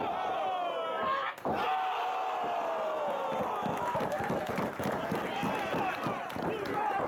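A wrestler lands hard on the ring mat with a thud.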